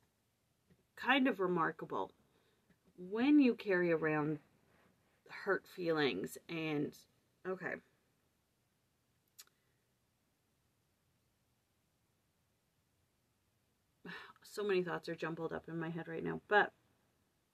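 A young woman speaks calmly and with animation close to a microphone, with long pauses.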